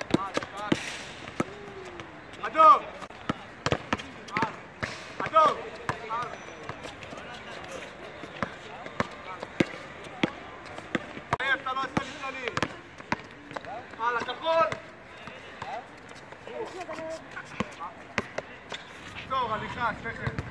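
A basketball bounces on an outdoor court.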